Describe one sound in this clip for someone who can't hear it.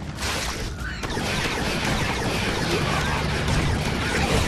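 Laser blasts zap and crackle rapidly.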